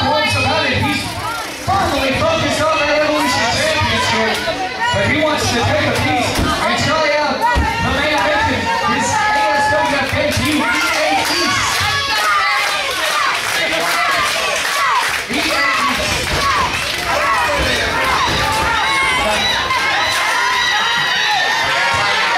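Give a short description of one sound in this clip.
A crowd chatters and shouts in a large echoing hall.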